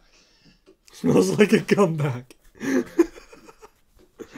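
A young man laughs loudly nearby.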